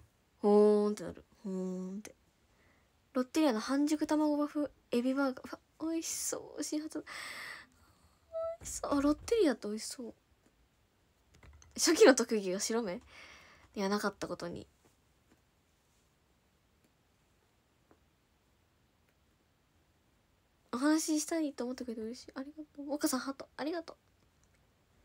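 A young woman talks casually and close to a microphone, in short bursts with pauses.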